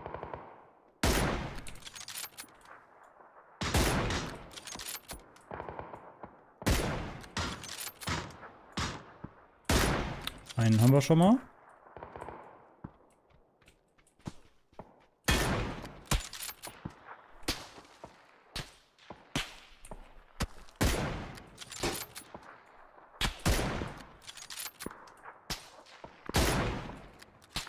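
Loud rifle shots crack and echo, again and again.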